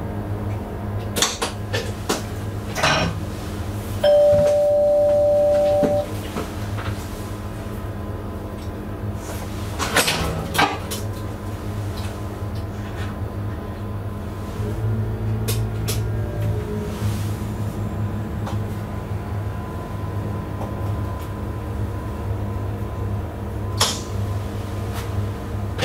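A train's motor hums steadily from close by.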